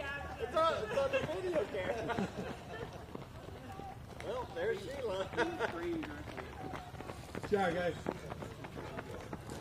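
Runners' shoes patter on pavement outdoors.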